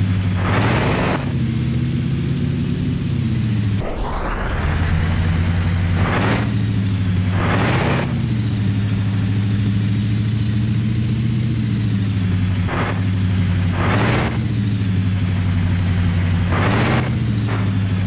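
Air brakes hiss in short bursts.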